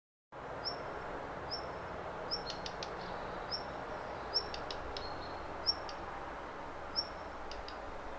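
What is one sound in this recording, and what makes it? A small bird chirps over and over.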